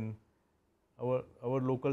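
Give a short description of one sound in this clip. An elderly man speaks calmly through a lapel microphone.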